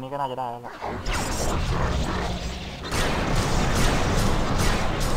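Magic spells crackle and whoosh during a clash.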